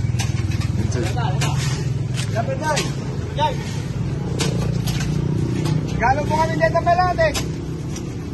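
A man calls out nearby.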